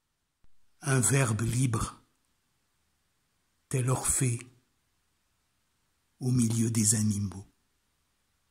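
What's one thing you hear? An elderly man speaks close to the microphone in short bursts with pauses.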